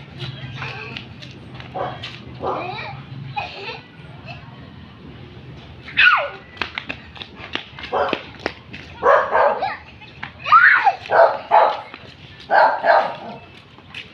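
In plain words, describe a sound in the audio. Young children shout and squeal playfully close by.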